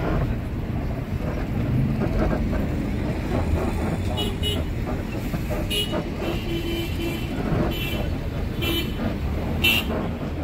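A bus engine rumbles steadily from inside the cab.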